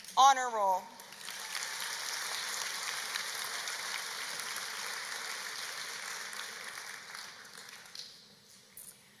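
An audience claps and cheers.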